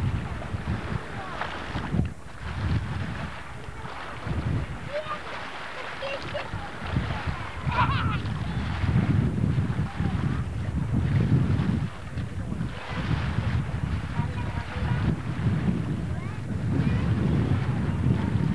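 A speedboat engine drones far off across the water.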